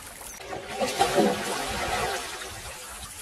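Water splashes loudly as a net hits the surface.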